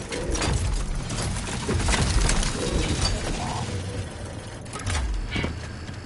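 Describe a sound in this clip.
Heavy footsteps thud on rough ground.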